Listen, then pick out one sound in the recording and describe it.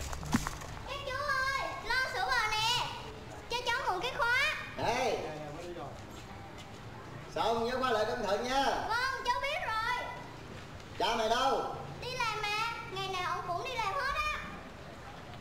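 A young girl speaks clearly and calmly, close by.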